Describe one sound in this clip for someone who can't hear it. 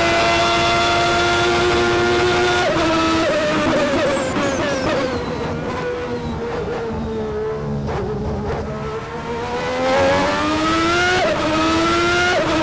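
A racing car engine screams at high speed, dropping in pitch as it slows for a corner and then rising again as it speeds up.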